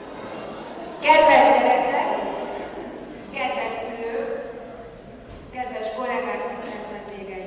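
A woman speaks calmly into a microphone, amplified in a large echoing hall.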